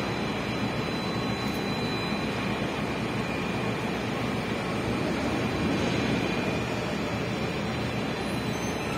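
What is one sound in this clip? A ship's machinery hums and rumbles steadily close by.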